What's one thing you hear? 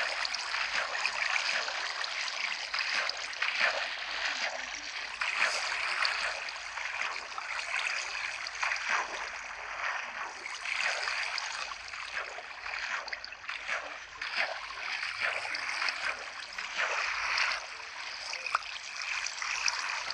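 A small boat splashes steadily as it paddles through water.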